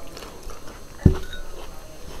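A bowl knocks against a metal pan.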